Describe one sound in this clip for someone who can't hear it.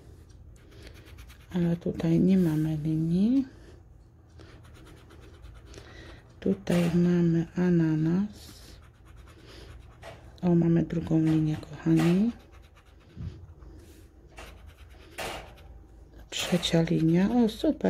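A scraper scratches rapidly at a card.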